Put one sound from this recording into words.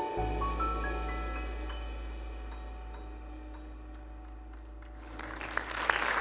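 A piano plays a chord that rings out and slowly fades in a large hall.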